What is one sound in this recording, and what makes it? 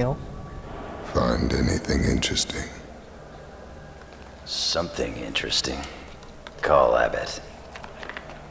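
A man speaks in a calm, low voice close by.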